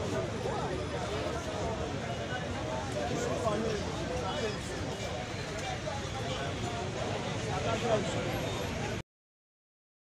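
A large outdoor crowd chatters and calls out loudly.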